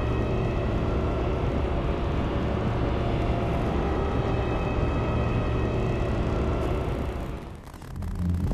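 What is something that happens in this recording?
A spaceship's engines hum steadily.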